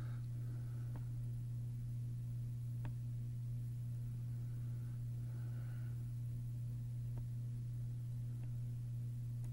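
Soft interface clicks sound as menu pages open.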